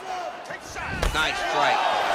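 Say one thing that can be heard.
A kick lands on a body with a hard thud.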